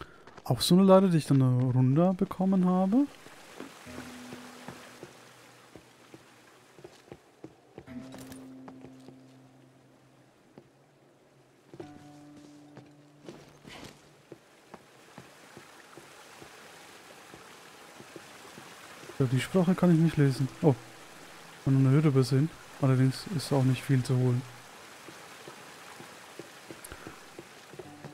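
Footsteps thud across wooden planks.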